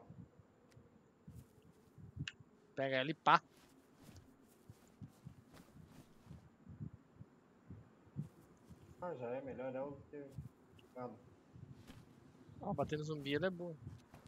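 Footsteps thud softly on grass and dirt.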